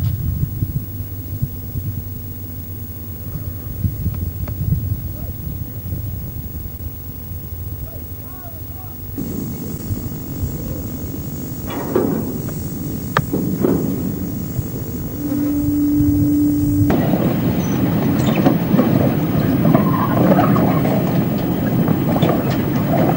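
A rail vehicle rumbles steadily along a track.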